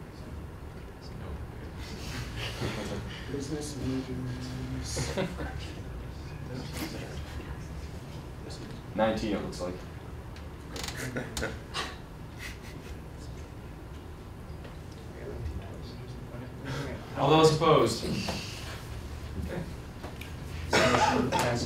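A group of young people talk and murmur in a room.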